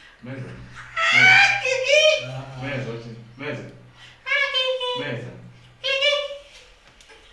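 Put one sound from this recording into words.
A young woman squeals with a high-pitched voice.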